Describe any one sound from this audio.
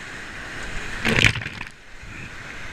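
A wave crashes and splashes over a raft.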